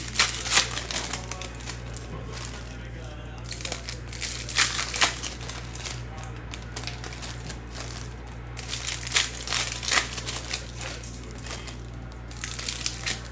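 Plastic card wrappers crinkle and rustle as they are torn open.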